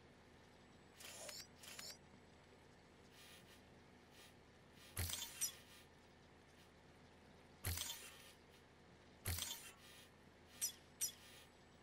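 Electronic interface sounds whoosh and blip in short bursts.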